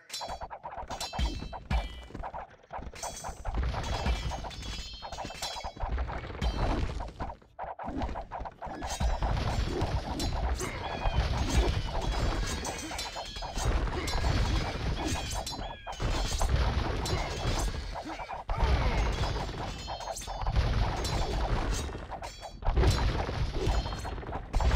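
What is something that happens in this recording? Swords clash and clang in a busy battle.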